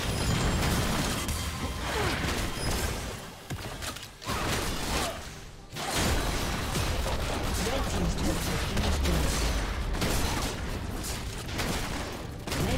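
Magic blasts and crackling battle effects burst in quick succession.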